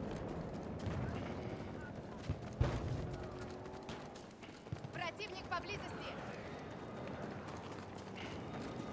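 Footsteps run through an echoing tunnel.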